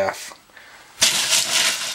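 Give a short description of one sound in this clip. Ice cubes clatter and rattle in a metal bowl.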